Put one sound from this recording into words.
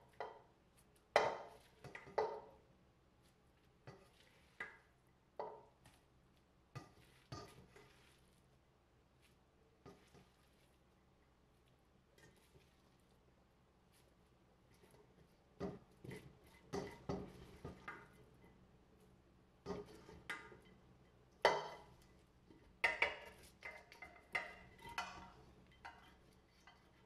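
A spatula scrapes and knocks against a metal pot.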